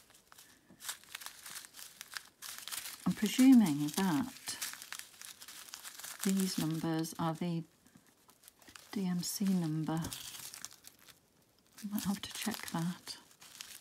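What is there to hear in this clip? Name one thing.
Plastic bags crinkle and rustle in hands.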